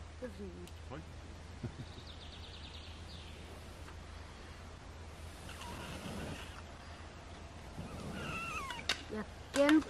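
A boy blows through cupped hands, making a hooting call.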